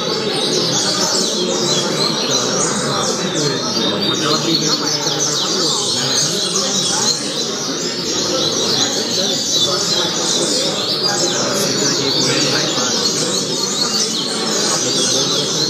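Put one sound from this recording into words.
Many small birds chirp and twitter busily close by.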